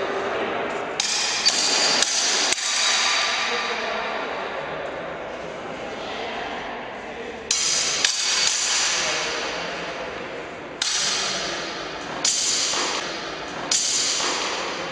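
Fencing blades clash and ring in an echoing hall.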